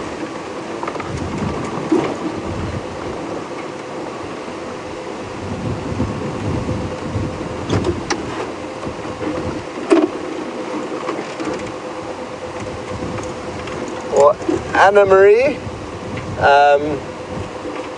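A vehicle engine rumbles steadily while driving along a dirt track.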